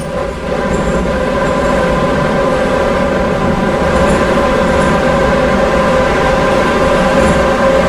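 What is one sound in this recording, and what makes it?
A subway train rumbles steadily through a tunnel.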